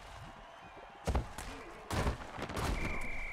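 Players crash together with heavy thuds.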